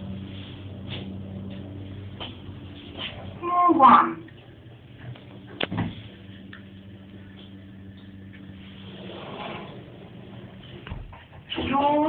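An elevator car hums steadily as it moves.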